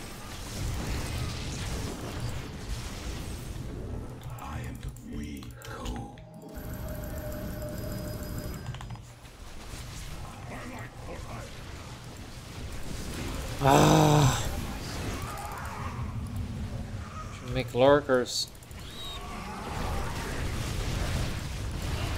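Laser weapons zap and crackle in a busy battle.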